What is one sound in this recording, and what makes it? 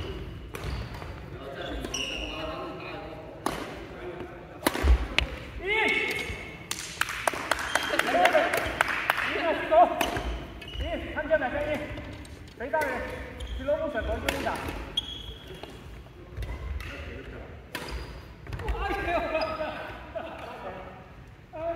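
Adults talk and call out across an echoing hall.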